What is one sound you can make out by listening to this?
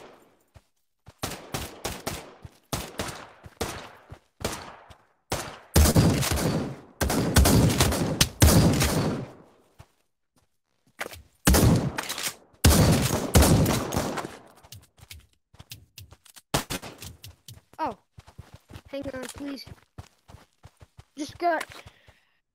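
Footsteps thud quickly on sand and hard ground.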